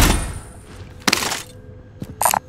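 A rifle is picked up with a short metallic clatter.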